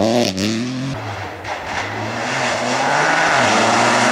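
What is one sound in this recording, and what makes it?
A second rally car engine approaches with a rising roar.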